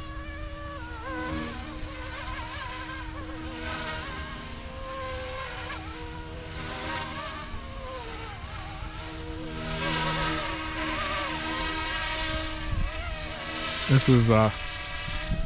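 A model helicopter's motor whines as it flies overhead, rising and falling in pitch.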